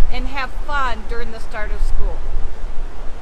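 A middle-aged woman speaks cheerfully close to a microphone.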